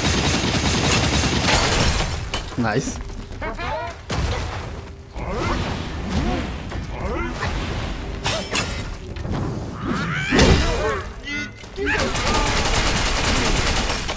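A wooden staff strikes hard with sharp metallic clangs.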